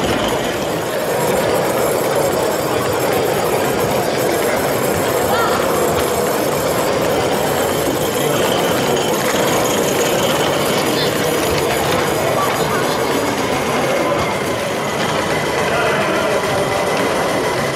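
A small steam engine chugs and whirs steadily.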